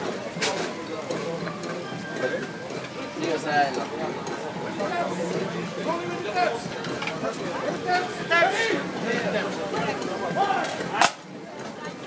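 A crowd chatters nearby, outdoors.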